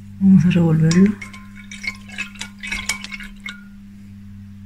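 A wooden stick scrapes and clinks against a glass jar.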